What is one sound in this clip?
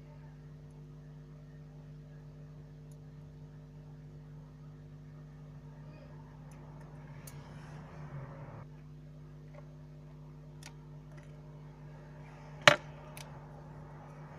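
Small tools tap and click against a phone's parts.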